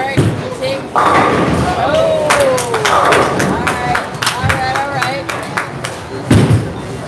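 Young people shout and cheer nearby in an echoing hall.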